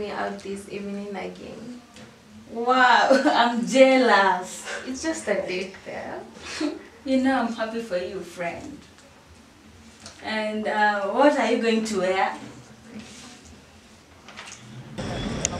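Two young women talk and laugh together nearby.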